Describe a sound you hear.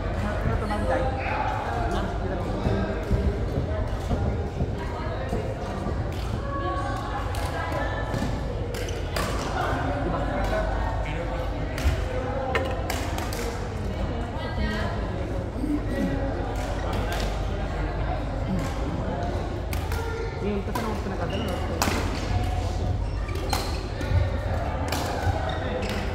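Badminton rackets hit a shuttlecock with sharp pops, over and over.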